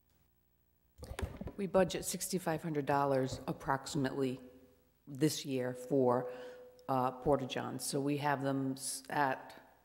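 A woman speaks with animation into a microphone, close by.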